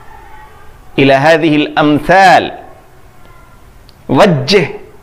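A man speaks close to a microphone in a slow, chanting recitation.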